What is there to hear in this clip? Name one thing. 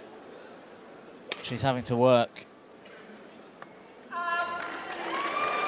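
A shuttlecock is struck with a racket with a sharp pop.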